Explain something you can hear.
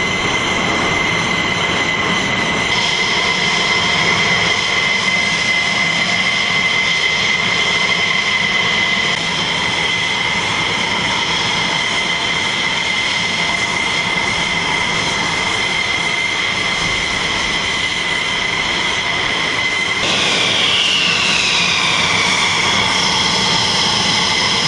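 A jet engine whines and roars steadily nearby.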